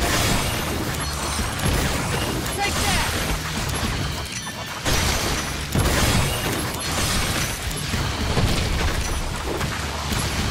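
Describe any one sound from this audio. Magic blasts burst loudly.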